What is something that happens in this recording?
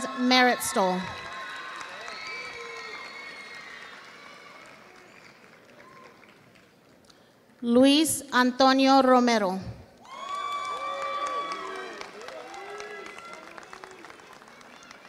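A crowd in a large hall cheers and applauds.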